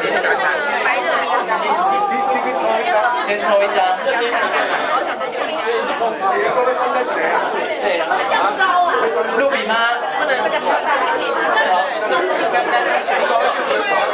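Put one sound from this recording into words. A crowd of men and women chatter all at once in a room.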